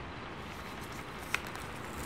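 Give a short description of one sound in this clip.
A metal letter opener slices through paper.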